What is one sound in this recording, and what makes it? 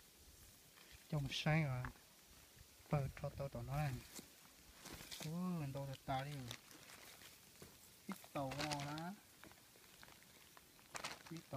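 A plastic sack rustles.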